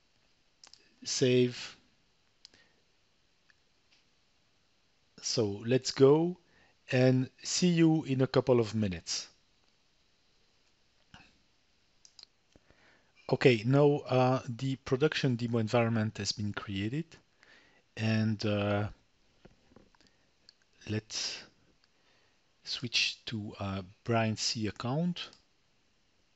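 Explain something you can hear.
A man talks calmly and close to a microphone, in bursts with pauses.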